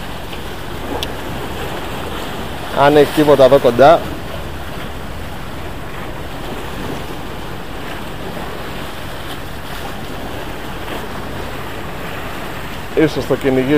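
Water laps against rocks close by.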